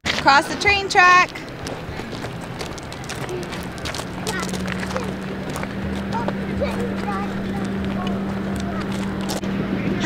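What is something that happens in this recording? Small feet crunch on gravel.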